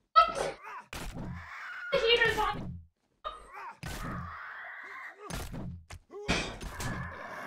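A wooden club thuds against a creature in quick blows.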